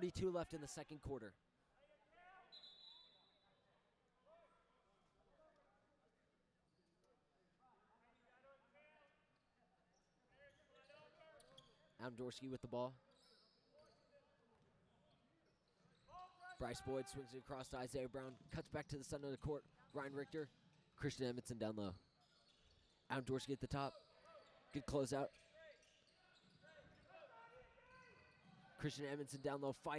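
A man shouts instructions loudly in a large echoing gym.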